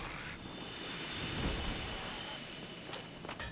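A magical blast roars and hums.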